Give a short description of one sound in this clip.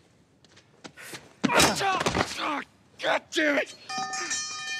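A young woman shouts angrily.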